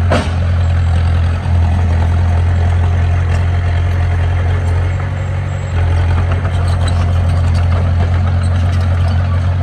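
Soil and stones scrape and tumble as a bulldozer pushes dirt.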